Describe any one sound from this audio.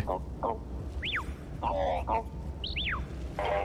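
A small robot beeps and chirps in rising and falling tones.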